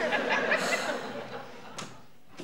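A woman speaks cheerfully nearby.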